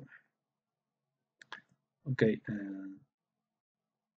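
A man speaks calmly and briefly into a close microphone.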